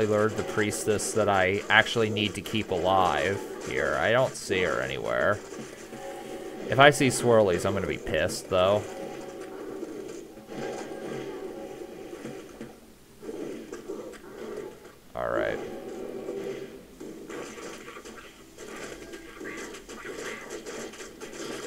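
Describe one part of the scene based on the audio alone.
Magic spells crackle and blast in quick bursts.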